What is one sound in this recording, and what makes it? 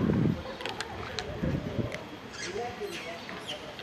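A monkey scrambles and scratches up a wall.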